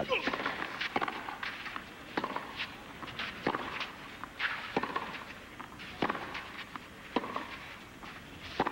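Tennis balls are struck back and forth with sharp pops of the racket in a steady rally.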